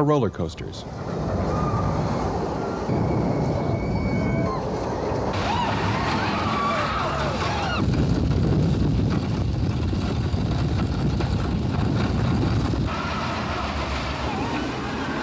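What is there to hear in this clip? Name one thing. A roller coaster train rumbles along its track.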